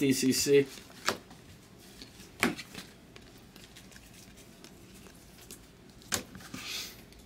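Trading cards snap and shuffle in hands.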